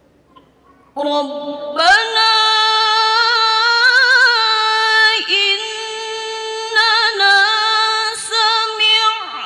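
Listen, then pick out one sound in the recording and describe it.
A woman sings a long, wavering melody loudly through a microphone in a reverberant hall.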